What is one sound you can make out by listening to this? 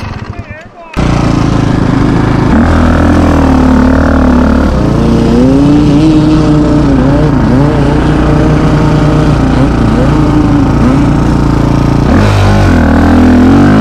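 A dirt bike engine roars loudly up close, rising and falling as it rides.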